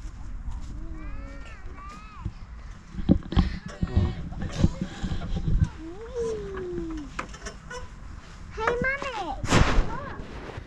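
A young girl talks in a high voice.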